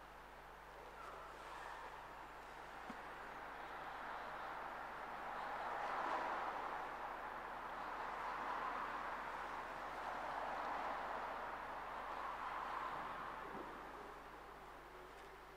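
A man chants softly in a large echoing hall.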